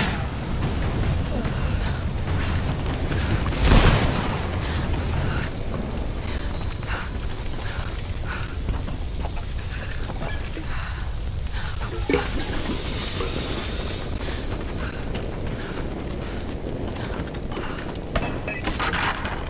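Fire roars and crackles all around.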